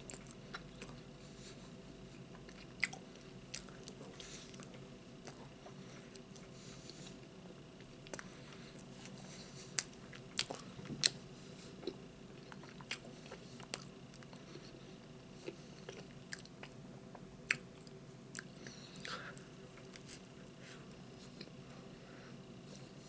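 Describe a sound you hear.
A middle-aged man chews and smacks his lips close by.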